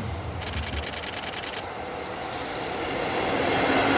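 A locomotive hauling freight wagons rumbles in on the rails.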